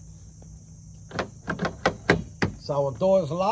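A car door handle clicks and rattles.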